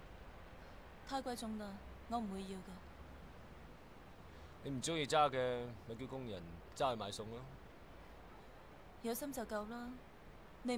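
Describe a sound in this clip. A young woman answers softly nearby.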